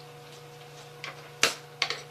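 A plastic bottle clicks and knocks as it is handled.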